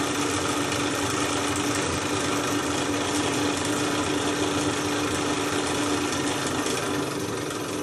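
A small steam engine hisses steadily.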